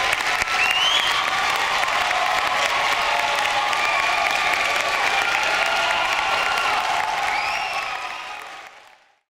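A large audience claps loudly in an echoing hall.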